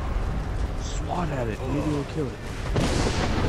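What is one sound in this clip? A dragon roars loudly and deeply.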